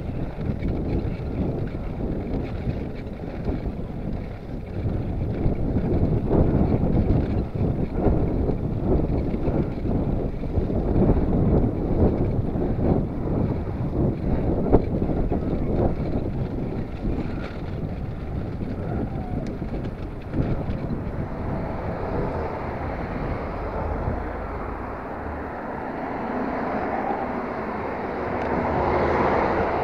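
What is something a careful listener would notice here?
Wind buffets a microphone outdoors, rumbling and gusting.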